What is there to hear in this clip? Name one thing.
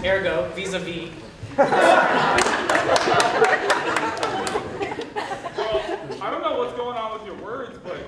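A young man speaks to an audience.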